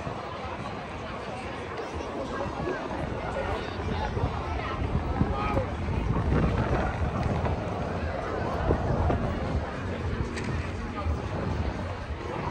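A crowd of people chatters and walks on an open street outdoors.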